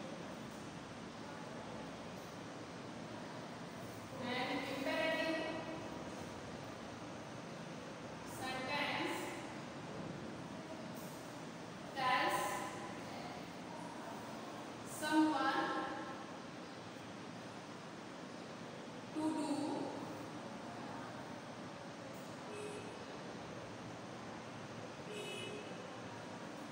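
A marker squeaks faintly on a whiteboard.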